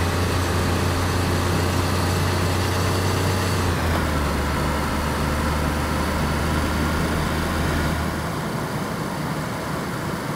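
Tyres roll on asphalt.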